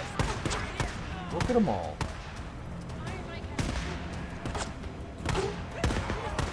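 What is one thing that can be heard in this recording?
A rifle fires several sharp shots.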